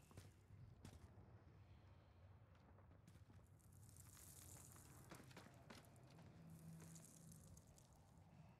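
Footsteps crunch softly on a hard, gritty floor.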